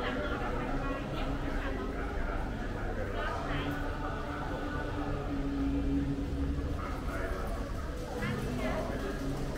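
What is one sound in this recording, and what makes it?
Several men and women chatter at a distance.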